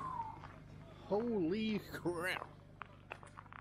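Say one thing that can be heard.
A middle-aged man speaks close by with animation.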